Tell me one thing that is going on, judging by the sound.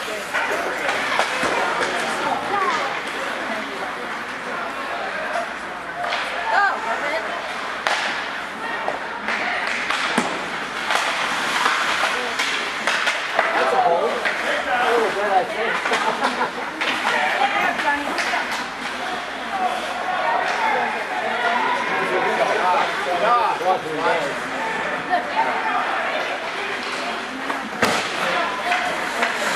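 A crowd of spectators cheers and calls out in a large echoing rink.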